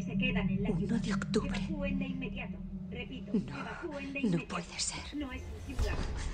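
A young woman speaks in distress, close by.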